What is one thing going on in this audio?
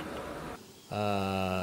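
A man speaks into microphones in a clear, steady voice.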